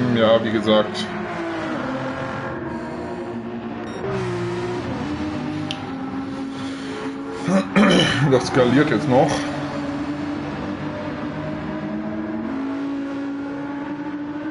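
A racing car engine roars steadily, its pitch shifting as it changes gear.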